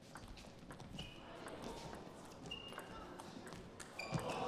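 Shoes squeak on the floor.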